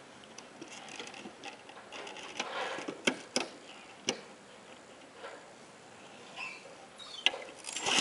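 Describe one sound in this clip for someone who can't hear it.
A lawnmower clicks and knocks as it is handled.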